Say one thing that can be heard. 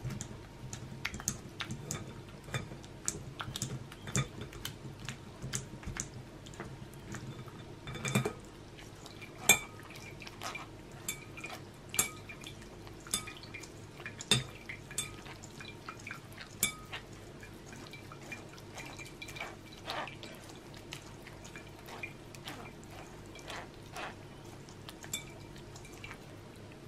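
Thick pulp squelches as it is pressed through a sieve.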